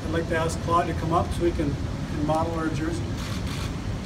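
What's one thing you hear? A middle-aged man speaks calmly into a microphone, heard through a loudspeaker in a large room.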